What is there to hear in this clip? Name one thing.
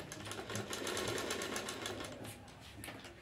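A sewing machine runs with a fast, rattling stitch.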